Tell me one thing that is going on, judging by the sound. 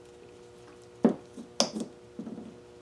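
A plastic bottle knocks down onto a table.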